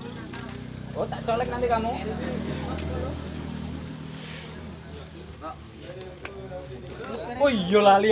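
Young boys talk nearby.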